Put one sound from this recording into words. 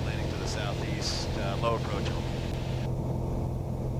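A man speaks calmly over an aircraft headset intercom.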